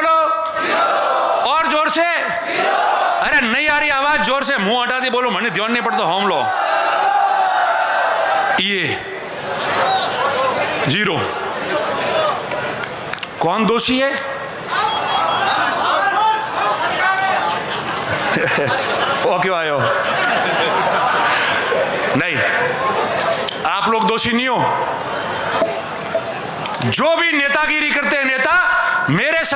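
A man speaks with animation and passion into a microphone over loudspeakers in a large echoing space.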